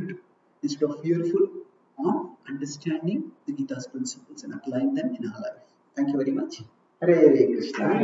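A man speaks calmly into a headset microphone, heard over an online call.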